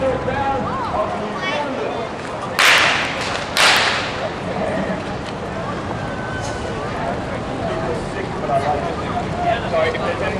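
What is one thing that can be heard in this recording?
Water splashes and gushes in a fountain.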